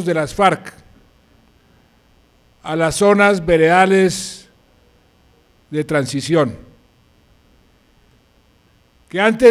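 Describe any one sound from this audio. A middle-aged man speaks formally into a microphone, in bursts with long pauses.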